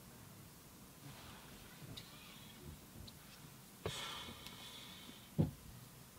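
Hands rub and rustle against a cloth head covering.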